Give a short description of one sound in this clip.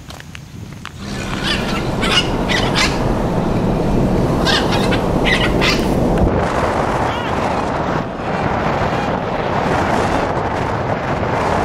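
Wind rushes loudly past an open window of a moving car.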